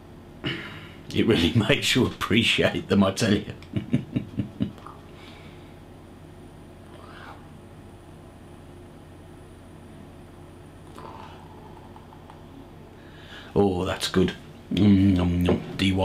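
A middle-aged man talks calmly and close to a microphone.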